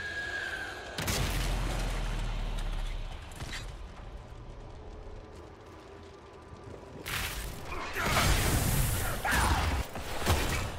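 A magical rift hums and crackles with energy.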